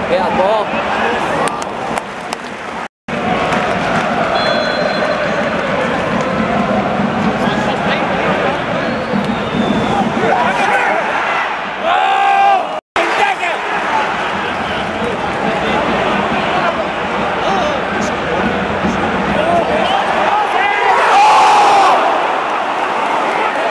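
A large stadium crowd sings and chants loudly all around.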